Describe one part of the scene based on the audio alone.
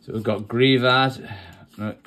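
Trading cards rustle and slide against each other in a hand.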